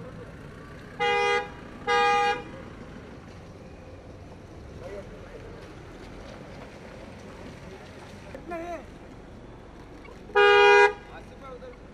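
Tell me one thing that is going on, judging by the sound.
A car horn honks loudly several times.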